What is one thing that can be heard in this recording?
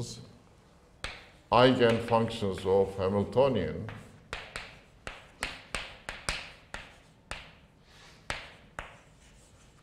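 Chalk taps and scratches on a chalkboard.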